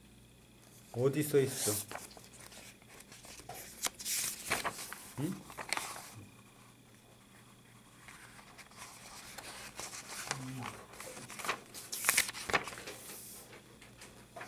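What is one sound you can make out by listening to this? Paper rustles as book pages are turned and handled.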